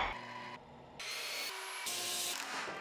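A belt grinder whirs as wood is pressed against it.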